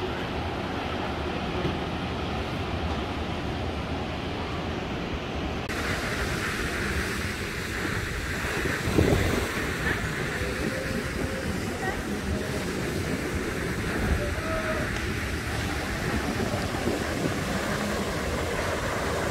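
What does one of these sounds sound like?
Wind gusts and rumbles against the microphone.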